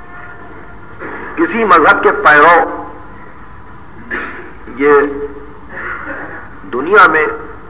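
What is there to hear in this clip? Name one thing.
An elderly man recites with feeling over an old, hissy recording.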